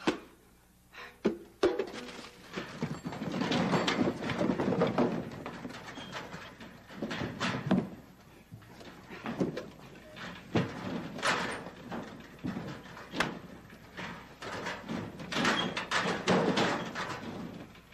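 A man rummages through a pile of clutter with rustling and clattering.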